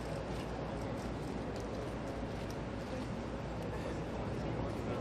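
A crowd of young men and women chatter and murmur close by.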